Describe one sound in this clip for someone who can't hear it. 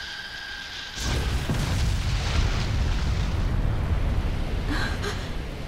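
A huge explosion booms and rumbles away.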